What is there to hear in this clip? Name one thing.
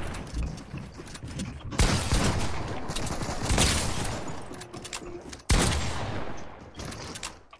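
Game building pieces clatter and snap into place repeatedly.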